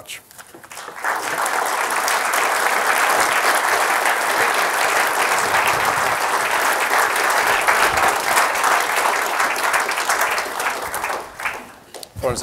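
A large audience applauds steadily.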